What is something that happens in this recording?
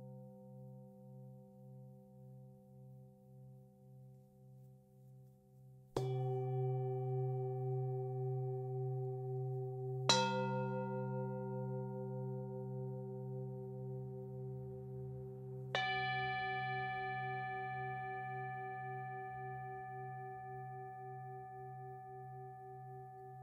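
Singing bowls hum and ring with a long, pulsing tone.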